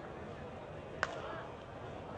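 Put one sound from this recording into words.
A softball bat cracks against a ball.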